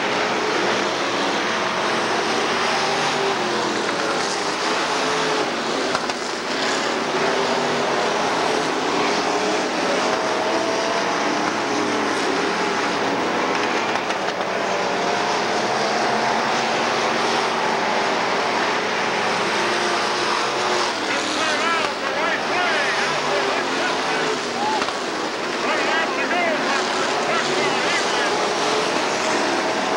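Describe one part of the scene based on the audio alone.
A crowd cheers outdoors.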